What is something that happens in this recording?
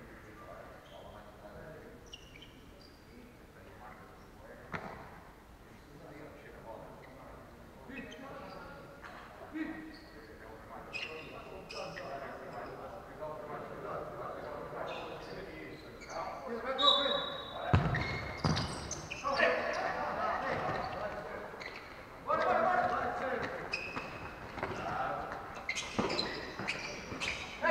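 Players shout and call out across a large echoing hall.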